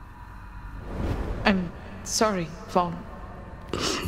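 A woman speaks softly and sadly, close by.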